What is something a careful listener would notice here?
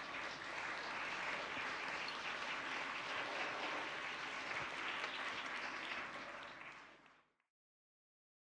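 An audience applauds in a large echoing hall, the clapping fading out.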